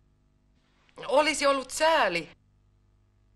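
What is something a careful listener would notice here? A young woman reads out slowly and clearly.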